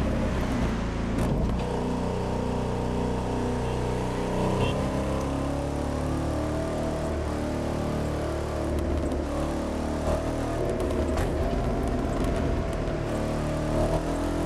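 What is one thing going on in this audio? Tyres screech through tight bends.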